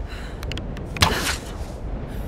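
A bowstring snaps as an arrow is released.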